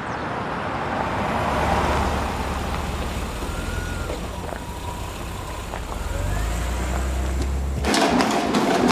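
A car engine hums as the car drives slowly past.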